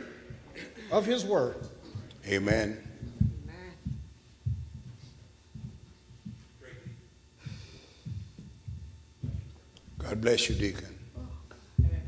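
A man speaks through a microphone in an echoing hall.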